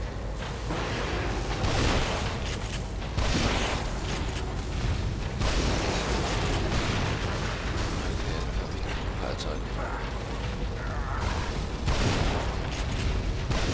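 A monster screeches and roars.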